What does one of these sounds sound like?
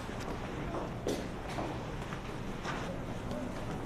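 Boots step on a hard floor in a steady march.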